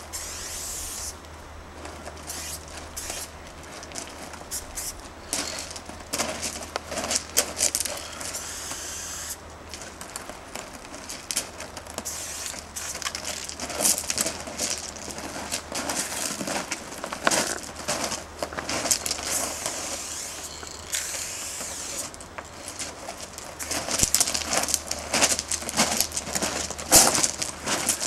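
A spray can hisses in short and long bursts close by.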